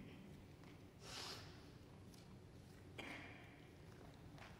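A young woman clears her throat softly.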